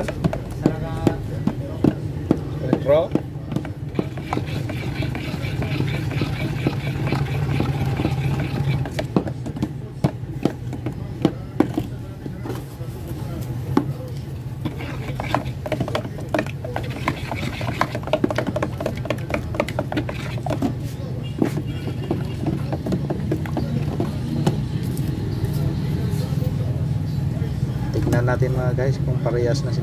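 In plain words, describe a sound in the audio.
Sticks stir thick paint with soft wet squelching.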